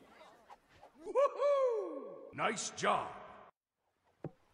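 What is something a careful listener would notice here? A man cries out in surprise.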